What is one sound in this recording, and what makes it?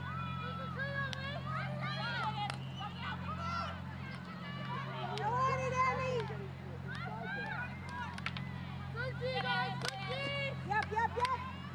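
Hockey sticks clack sharply against a ball.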